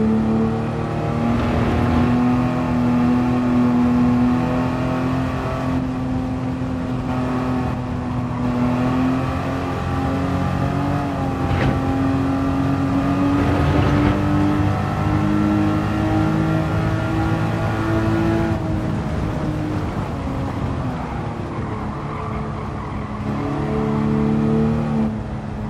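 A racing car engine roars loudly, its pitch rising and falling as it accelerates and shifts gears.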